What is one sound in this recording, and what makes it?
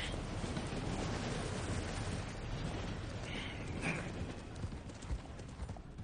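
Horse hooves clop on the ground.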